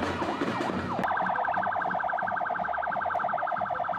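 An ambulance siren yelps in a fast warble.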